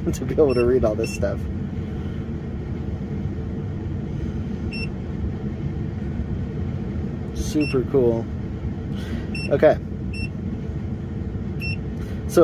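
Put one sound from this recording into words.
A handheld device beeps briefly.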